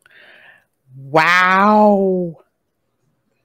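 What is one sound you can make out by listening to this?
A woman lets out a long, drawn-out exclamation.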